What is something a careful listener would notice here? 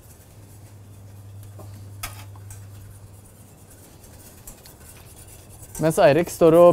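A whisk beats a thin liquid in a metal pan.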